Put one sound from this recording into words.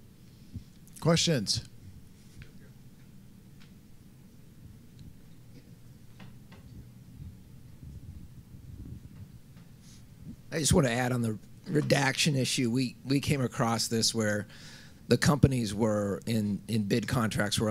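A man speaks through a microphone in a calm voice.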